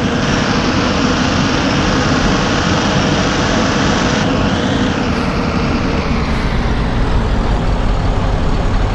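Tyres hum on asphalt.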